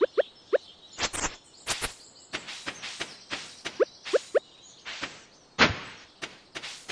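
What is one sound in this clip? A scythe swishes through grass.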